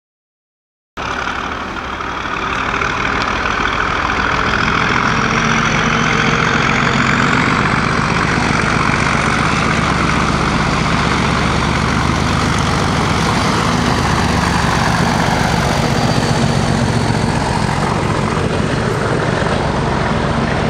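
Diesel locomotive engines roar loudly as they approach and pass close by.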